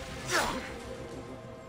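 A sword strikes an enemy with a sharp metallic hit.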